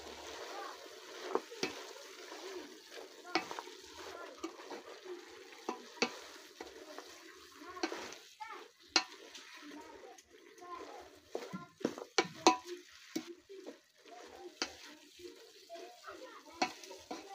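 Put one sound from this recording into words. A wooden spoon scrapes and knocks against a metal pot while stirring.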